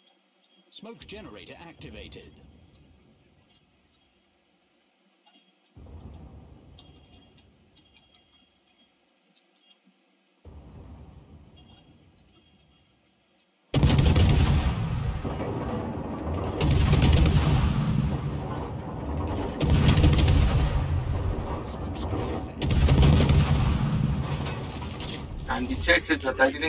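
Heavy naval guns fire in loud booming salvos that rumble away.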